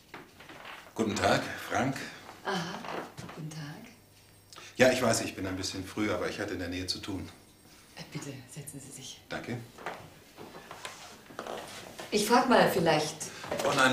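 A middle-aged woman answers calmly.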